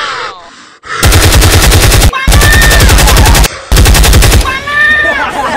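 A gun fires rapid bursts of loud shots.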